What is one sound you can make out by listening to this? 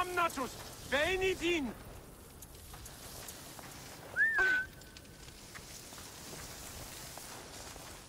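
Dry grass rustles as someone creeps through it.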